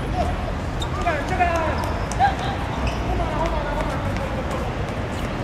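Young men shout to each other across an outdoor pitch.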